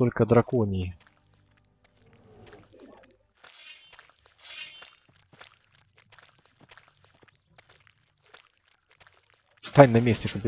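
Footsteps tread softly on forest ground.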